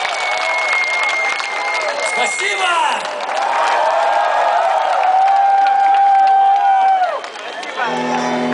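A large crowd cheers and sings along loudly close by, outdoors.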